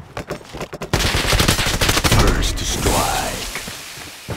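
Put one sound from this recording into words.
A rifle fires a loud shot that echoes outdoors.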